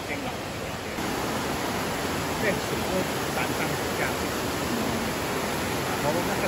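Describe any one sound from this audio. Water rushes steadily in a stream nearby, outdoors.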